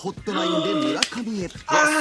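A young woman claps her hands.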